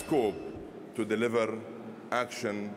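A man speaks calmly into a microphone in a large hall.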